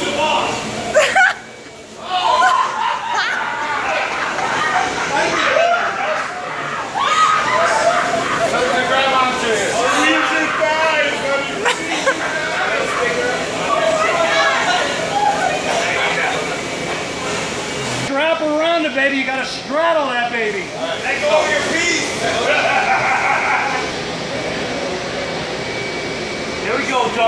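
A young man whoops and shouts while riding.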